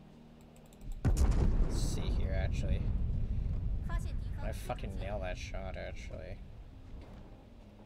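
Heavy naval guns boom and rumble.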